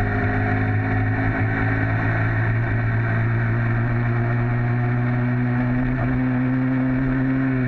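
A small bicycle engine buzzes steadily close by.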